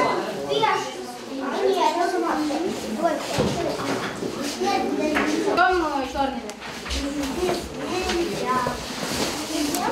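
Young children talk nearby in a room.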